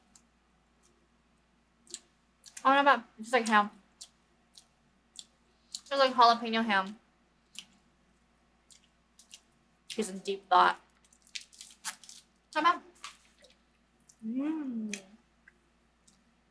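A young man chews crunchy snacks with loud, close crackling.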